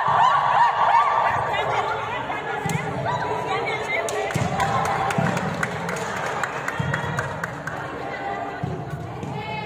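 Young women cheer and shout excitedly in a large echoing hall.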